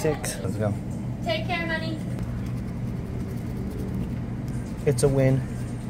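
A coin scratches at a paper ticket.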